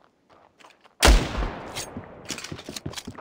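A sniper rifle fires a single loud shot that echoes away.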